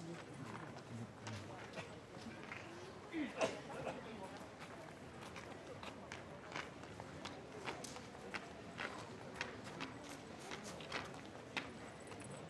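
Footsteps tap lightly on a stone pavement.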